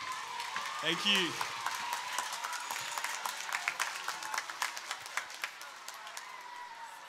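A large crowd claps and cheers outdoors.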